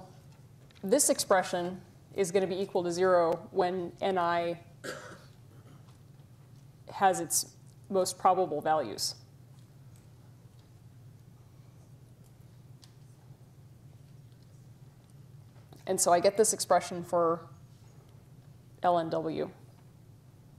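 A woman lectures calmly through a microphone, pausing between phrases.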